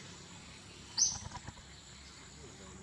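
Leaves and branches rustle as a monkey moves through a tree.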